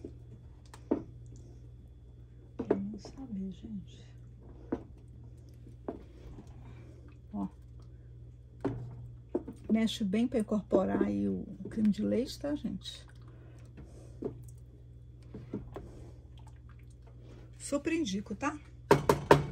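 A wooden spoon stirs a thick liquid in a large metal pot, knocking and scraping against its sides.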